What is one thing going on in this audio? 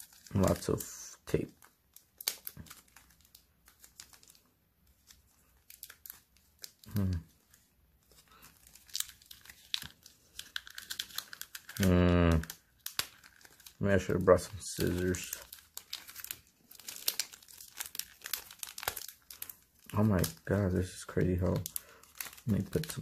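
Plastic card sleeves rustle and crinkle as they are handled.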